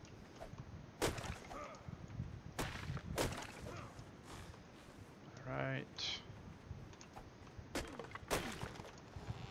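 An axe chops into a tree trunk with sharp thuds.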